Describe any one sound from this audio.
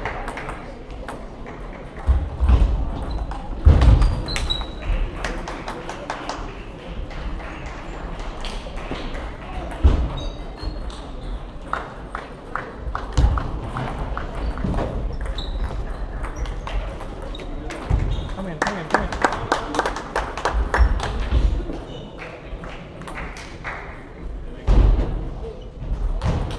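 A murmur of many people talking fills the hall.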